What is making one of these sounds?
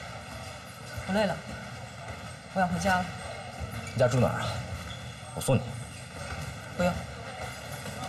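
A young woman speaks quietly nearby.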